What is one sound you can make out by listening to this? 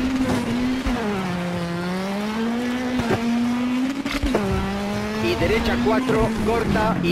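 A rally car engine roars at high revs, dropping in pitch with each gear change.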